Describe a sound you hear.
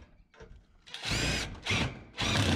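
A cordless drill whirs as it drives a screw into sheet metal.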